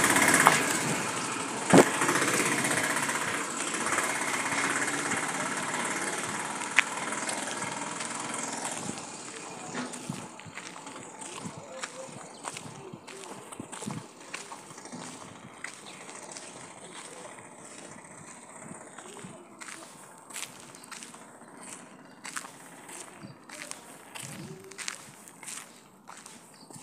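Footsteps crunch on a gravel road.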